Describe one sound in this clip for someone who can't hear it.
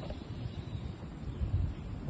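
A woman sips a drink through a straw.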